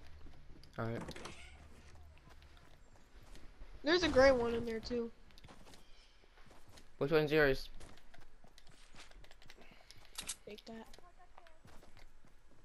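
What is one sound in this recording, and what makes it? Quick light footsteps patter on the ground.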